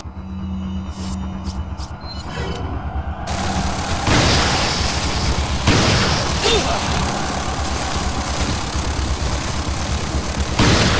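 Rumbling game music plays steadily.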